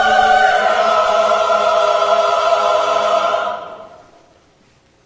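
A choir sings a held chord that rings out and fades in a large echoing hall.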